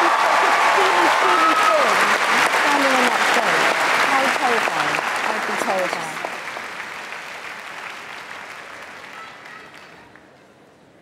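A large audience cheers and applauds in a big hall.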